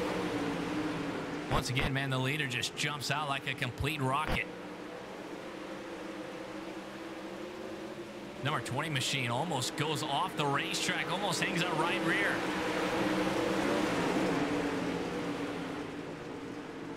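Several race car engines roar steadily together.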